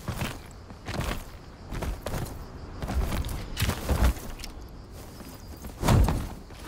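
Footsteps scuff and thud on rock.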